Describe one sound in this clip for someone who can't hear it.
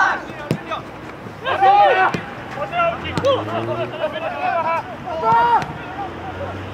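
Young men shout to each other outdoors, far off across an open field.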